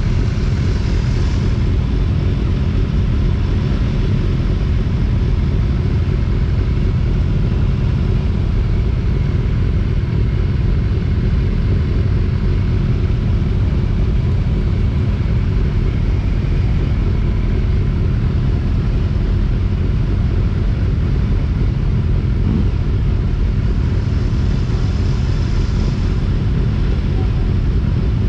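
A motorcycle engine idles close by with a steady low rumble.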